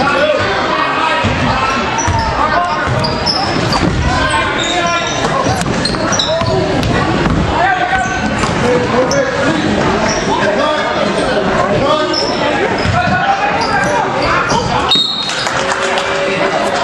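Young men shout and call out across a large echoing gym.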